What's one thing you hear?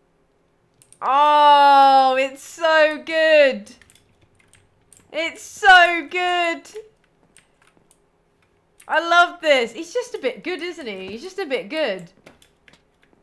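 A young woman talks animatedly into a close microphone, in short bursts.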